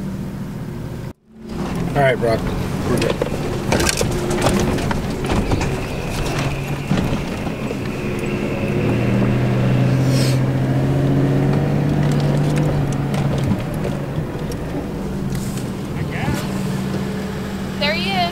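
A truck engine rumbles and revs.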